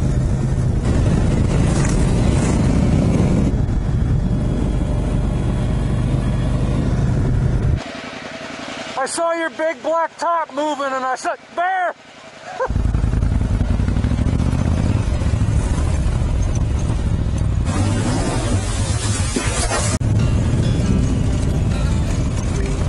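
A motorcycle engine hums and roars as the bike rides along.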